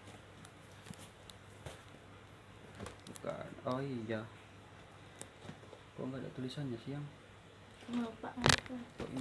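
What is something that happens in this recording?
Plastic wrapping crinkles as a box is handled.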